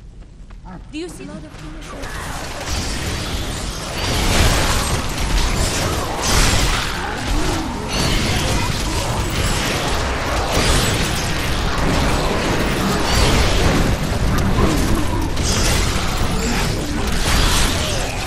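Fiery spell explosions boom and crackle in a video game battle.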